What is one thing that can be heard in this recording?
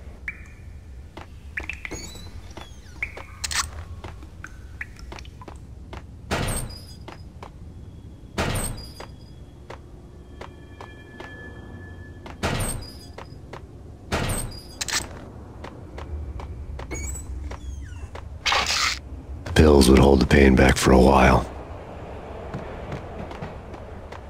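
Footsteps fall on a hard tiled floor.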